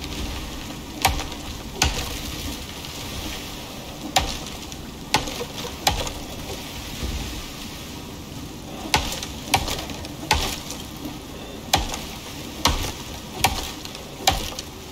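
An axe chops into a tree trunk with sharp, repeated thuds.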